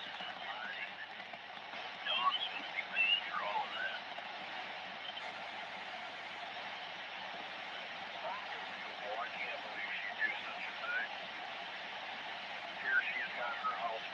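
Static hisses steadily from a radio loudspeaker.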